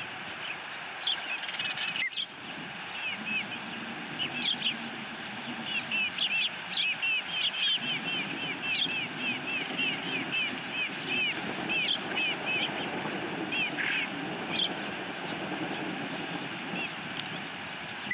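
Osprey chicks chirp and peep in quick, high calls.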